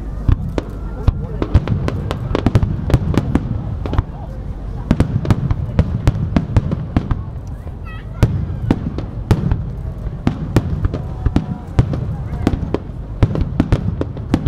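Fireworks crackle and pop in rapid bursts.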